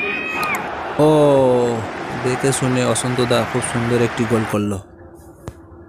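A crowd roars and cheers loudly.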